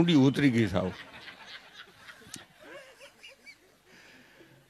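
An elderly man laughs softly near a microphone.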